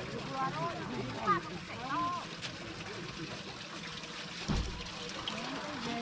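A man scoops and pours water into a barrel.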